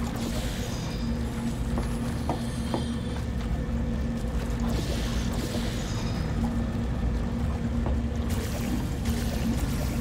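White gel splatters and splashes loudly in bursts.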